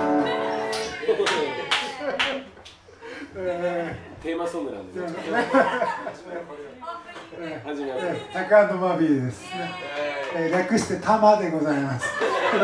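A second man talks and jokes into a microphone.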